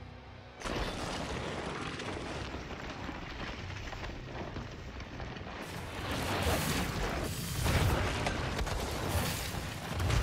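Rock and debris crash and rumble loudly.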